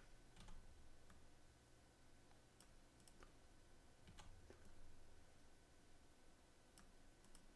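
Soft interface clicks tick now and then.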